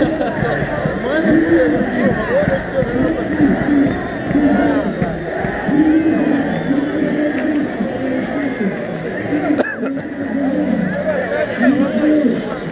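A large crowd of men and women chatters outdoors in the open air.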